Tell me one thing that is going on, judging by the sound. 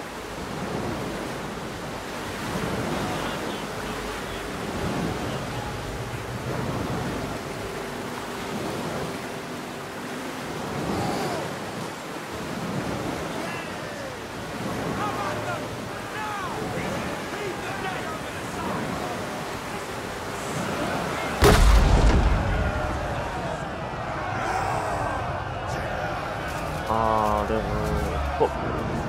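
Water splashes and rushes against a wooden hull.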